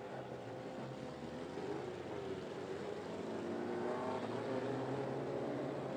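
Several race car engines roar loudly around a dirt track outdoors.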